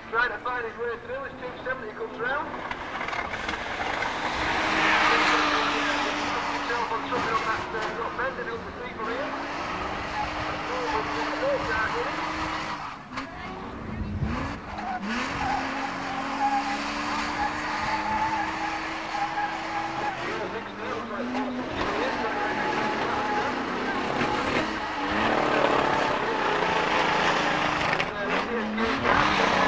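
Car engines roar and rev.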